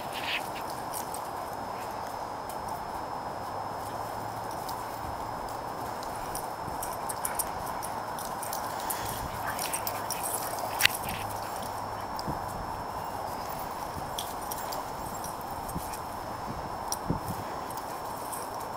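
Dogs' paws scuffle and patter on dry ground.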